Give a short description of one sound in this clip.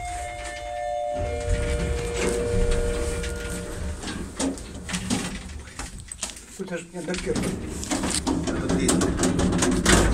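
An elevator hums and rumbles as it moves.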